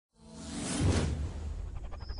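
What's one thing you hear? A whoosh sweeps past at the start.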